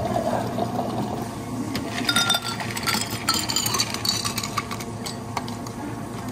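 Ice cubes clink and rattle in a glass.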